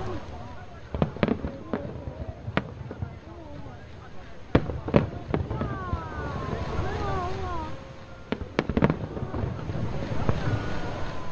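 Fireworks burst with sharp bangs and booms.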